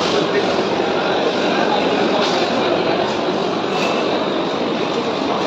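A crowd of people chatters all around in a busy, echoing room.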